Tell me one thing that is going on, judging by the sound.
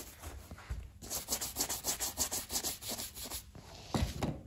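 A bristle brush scrubs briskly over leather in quick strokes.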